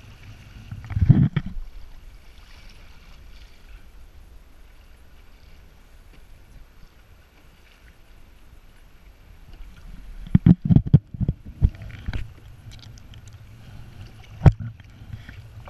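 A paddle knocks against a plastic kayak hull.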